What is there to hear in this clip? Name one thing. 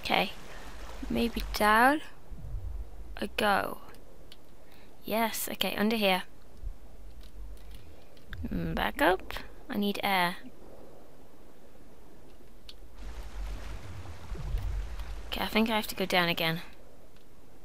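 A young woman talks with animation into a headset microphone, with pauses.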